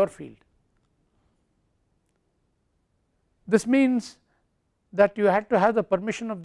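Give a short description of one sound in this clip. An elderly man speaks calmly into a clip-on microphone, with pauses.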